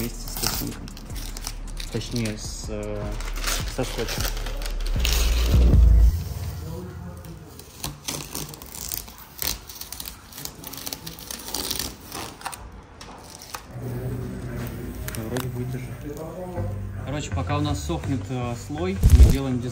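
Newspaper rustles and crinkles as it is handled.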